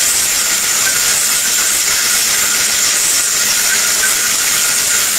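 A blender motor whirs loudly and steadily.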